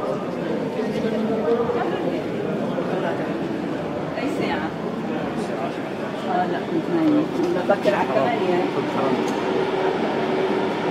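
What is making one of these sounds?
Many voices murmur and echo in a large stone hall.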